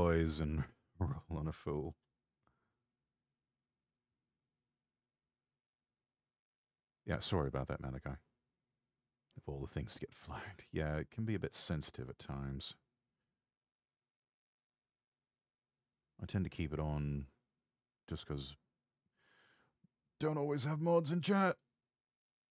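A young man speaks casually into a microphone, in short bursts with pauses.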